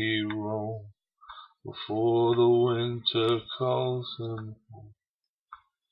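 A middle-aged man speaks close to a microphone, calmly, in short bursts.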